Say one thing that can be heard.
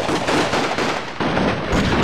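Gunshots ring out loudly in quick bursts.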